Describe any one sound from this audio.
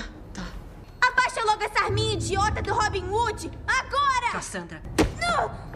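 A woman shouts loudly and angrily.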